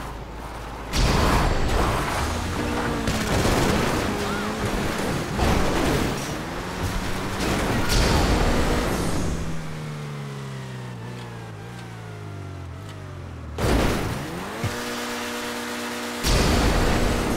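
A car thuds heavily onto rough ground.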